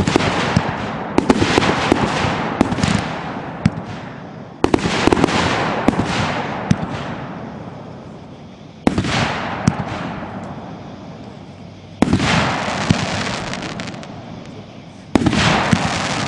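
Fireworks burst with loud booms that rumble and echo away.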